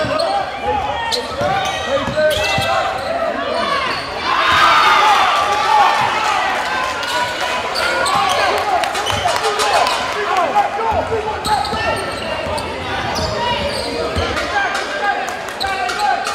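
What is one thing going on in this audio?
Sneakers squeak sharply on a hard floor in an echoing gym.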